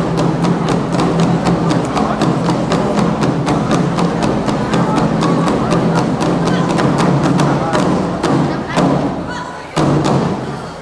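Large drums pound in a fast, loud rhythm in a big echoing hall.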